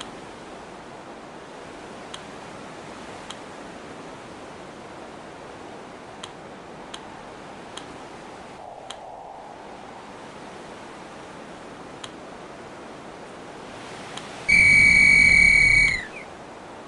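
Water rushes steadily past sailing boats.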